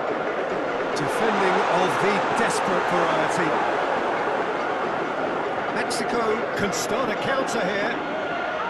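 A football is kicked with sharp thumps.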